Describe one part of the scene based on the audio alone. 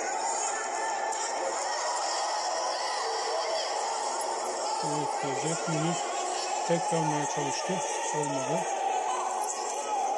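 A large indoor crowd murmurs and cheers in an echoing hall.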